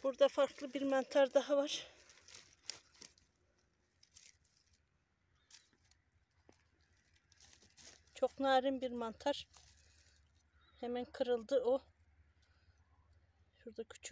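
Dry twigs and needles rustle and crackle under a hand.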